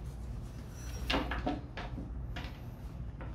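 Metal tools clatter onto a hard surface.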